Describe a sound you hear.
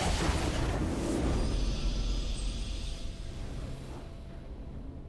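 A triumphant victory fanfare blares and fades.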